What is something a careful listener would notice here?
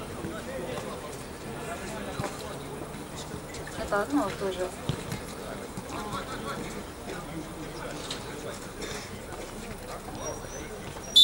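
Men's voices chatter and call out at a distance outdoors.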